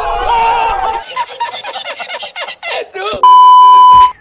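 An elderly man laughs loudly and heartily.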